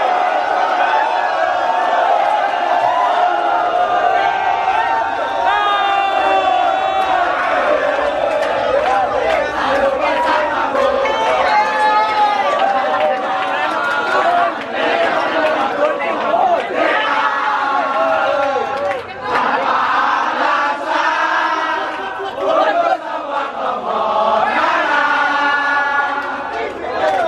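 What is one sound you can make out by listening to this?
A large crowd of young men sings and chants loudly together outdoors.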